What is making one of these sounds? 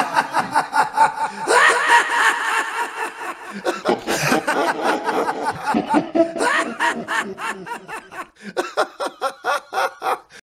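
A man sings loudly, close by.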